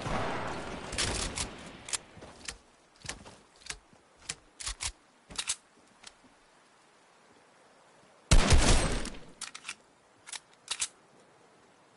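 Wooden panels snap into place with sharp, quick clacks.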